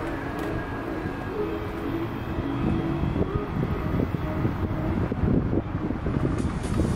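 Roller skate wheels rumble and roll over concrete.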